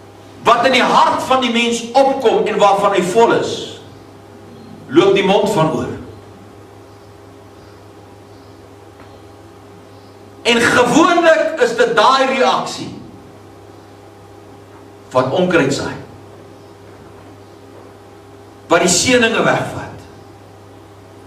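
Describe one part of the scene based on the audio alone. A man preaches forcefully through a microphone, pausing between phrases.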